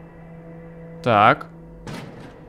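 A door creaks slowly open.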